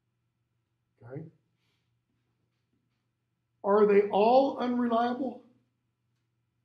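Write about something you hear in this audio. An older man speaks briefly into a nearby microphone.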